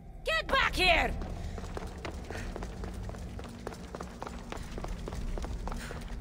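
Footsteps run quickly on a stone floor.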